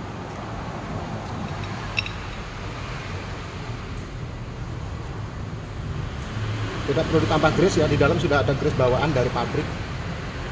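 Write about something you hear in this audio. Small metal parts clink together as they are handled.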